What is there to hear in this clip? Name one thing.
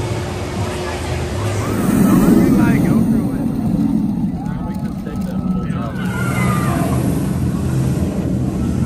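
Riders scream on a passing roller coaster.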